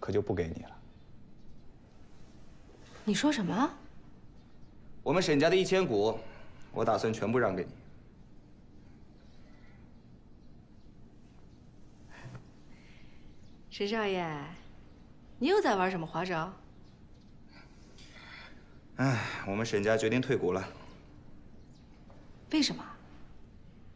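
A woman speaks firmly, close by.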